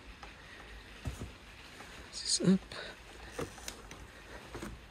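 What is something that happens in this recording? A car's folding soft top creaks and knocks as it moves.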